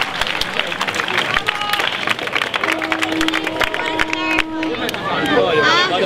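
A large crowd claps rapidly outdoors.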